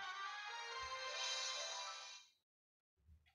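A victory fanfare plays from a game.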